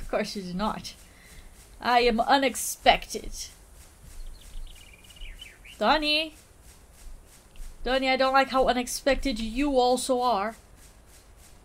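A young woman talks with animation into a close microphone, pausing now and then.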